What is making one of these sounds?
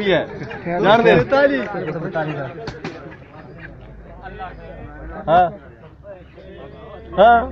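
Several young men talk and call out loudly close by, outdoors.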